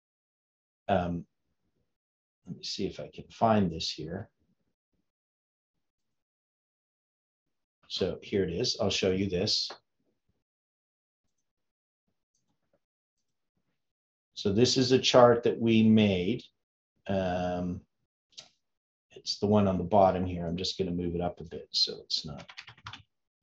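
An elderly man speaks calmly into a close microphone, pausing between phrases.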